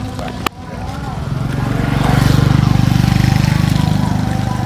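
A motorbike engine hums as it rides up.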